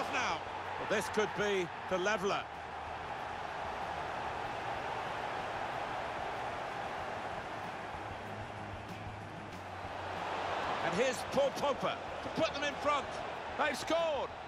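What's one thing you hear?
A large stadium crowd roars.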